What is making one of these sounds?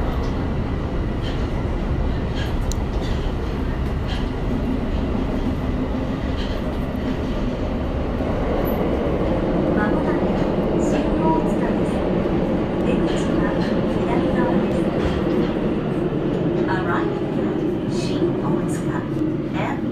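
A train car rumbles and rattles steadily along the track.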